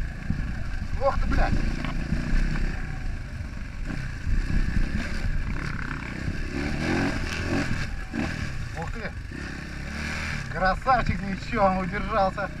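Another dirt bike engine whines ahead, rising and falling in pitch.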